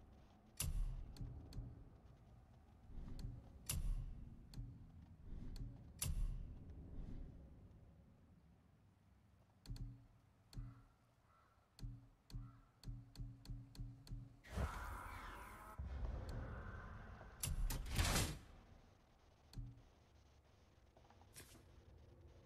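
Short interface clicks sound as menu items are selected.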